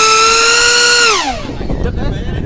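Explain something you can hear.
A small jet engine whines loudly, dropping in pitch as it passes.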